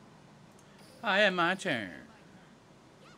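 A short electronic chime sounds and then swoops downward.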